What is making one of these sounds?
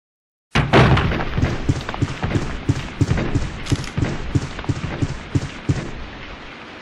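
Footsteps thud steadily on a wooden floor, echoing faintly.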